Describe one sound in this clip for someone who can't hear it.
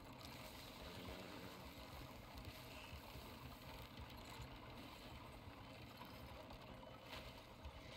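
A wooden wagon rumbles and creaks as it rolls over rough ground.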